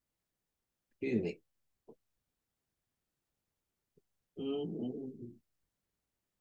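A man speaks calmly, heard through an online call, in short bursts.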